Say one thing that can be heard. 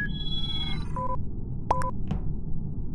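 A game countdown beeps in short, evenly spaced tones.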